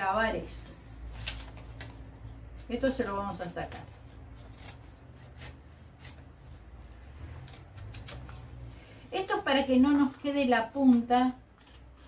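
Scissors snip through paper in short cuts.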